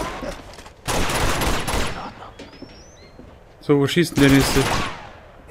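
A rifle fires in loud bursts.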